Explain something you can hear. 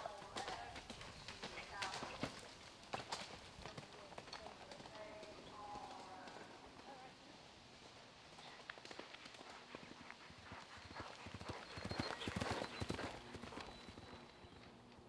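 A horse's hooves thud as it gallops.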